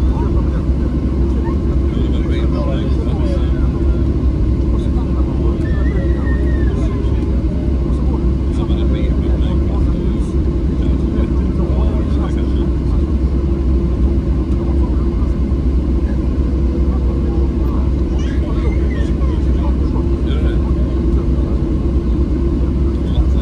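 Aircraft wheels rumble over the runway.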